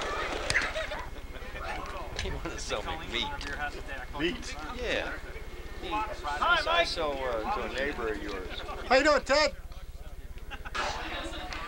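Several adults chat and laugh outdoors.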